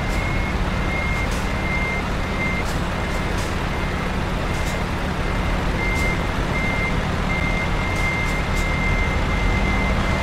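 A truck engine rumbles as the truck drives slowly and turns.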